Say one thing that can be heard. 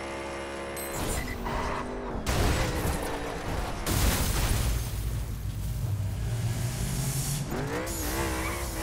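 Tyres skid and a car crashes with a loud, rumbling impact.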